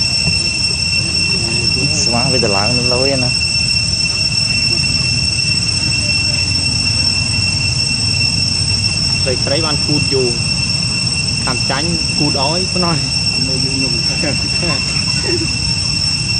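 Monkeys squeal and chatter in short bursts close by.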